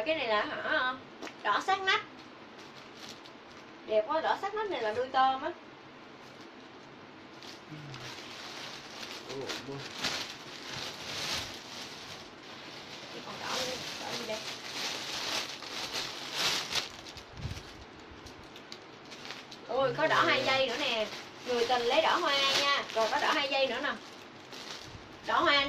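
A young woman talks brightly and close by.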